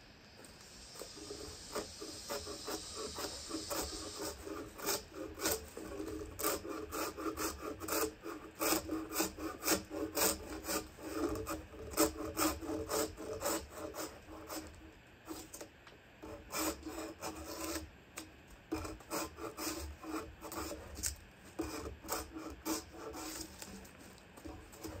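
A drawknife scrapes bark off a log in repeated rasping strokes.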